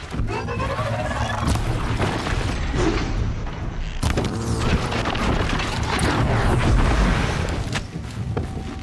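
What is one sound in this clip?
Heavy logs tumble and crash down a slope.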